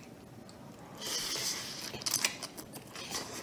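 A man slurps noodles loudly, close to the microphone.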